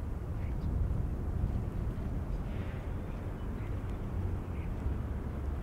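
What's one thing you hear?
Wind rumbles steadily across the microphone outdoors.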